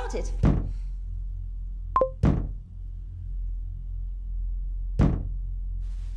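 Loud thumps knock in a room.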